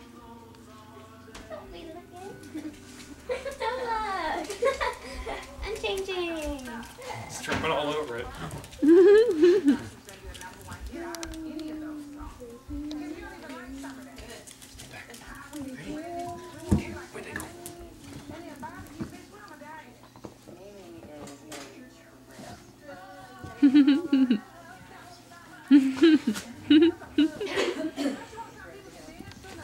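A man talks playfully to a puppy nearby.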